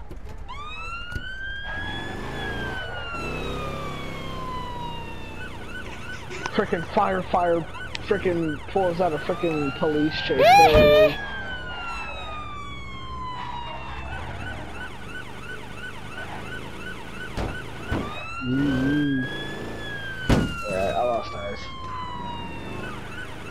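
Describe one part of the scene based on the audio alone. A police siren wails, rising and falling in long sweeps.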